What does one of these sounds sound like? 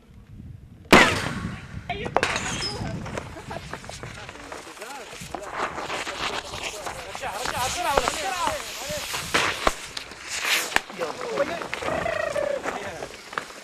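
Several men shout and call out excitedly nearby.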